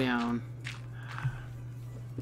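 A block of dirt crumbles with a soft crunch.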